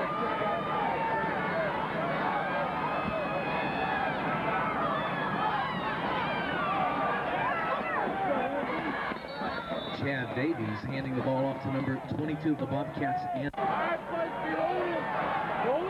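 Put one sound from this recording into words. A large outdoor crowd chatters and cheers loudly from the stands.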